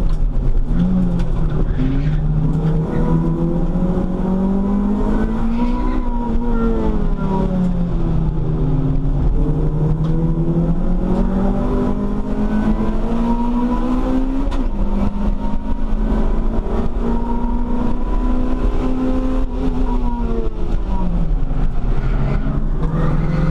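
A cabin rattles and buzzes steadily with vibration.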